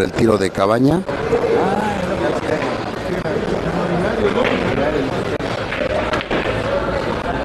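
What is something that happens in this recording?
A crowd of men and women chatters.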